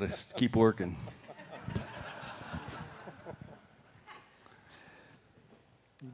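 A group of men laugh softly.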